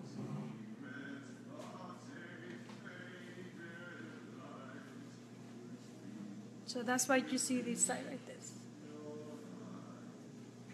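A young woman speaks calmly close by.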